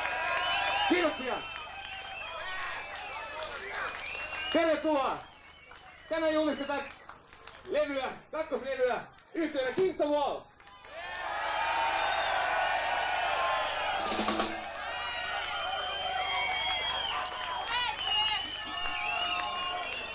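An electric guitar plays loudly.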